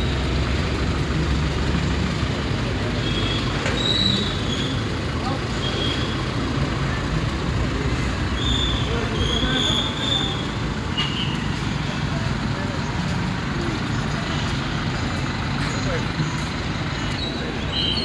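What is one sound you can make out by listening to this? Men talk loudly in the background.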